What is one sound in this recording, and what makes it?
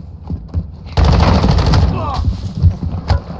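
Rapid gunshots ring out close by in an echoing hall.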